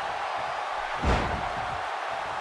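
A heavy body slams down onto a wrestling ring with a loud thud.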